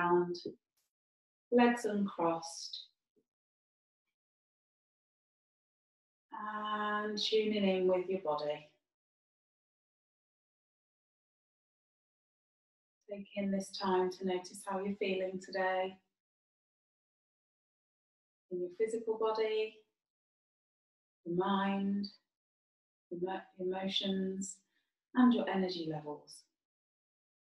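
A woman speaks calmly and slowly close to a microphone, with long pauses.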